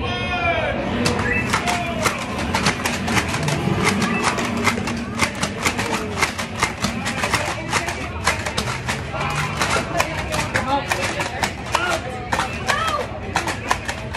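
Toy blasters fire rapid bursts of foam darts with sharp clicking pops.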